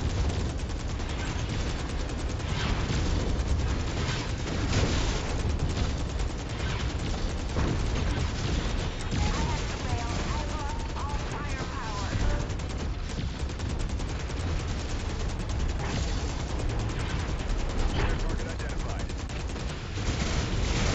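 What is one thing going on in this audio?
A deep engine rumble drones steadily.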